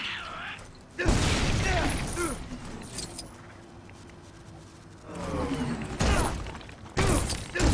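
Metal parts clatter as a van is smashed apart.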